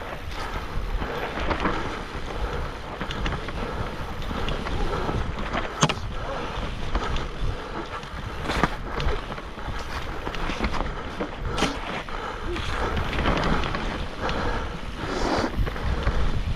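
Wind rushes past the microphone.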